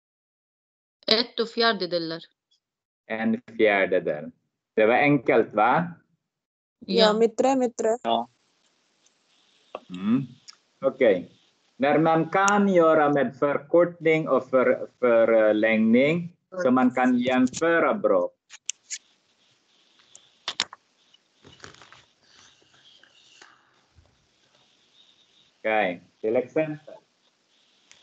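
A man explains calmly, heard through an online call.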